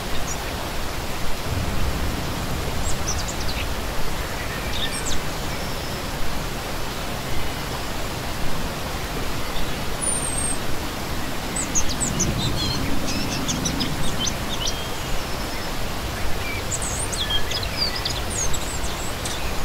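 A mountain stream rushes and splashes steadily over rocks.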